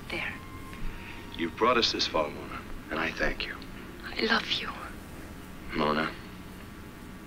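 A man speaks quietly and earnestly, close by.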